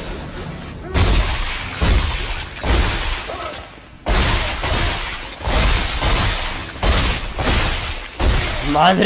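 Heavy blasts of gunfire boom in bursts.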